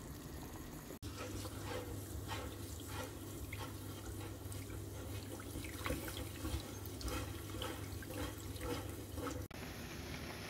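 Rice swishes and rustles as a hand stirs it in water.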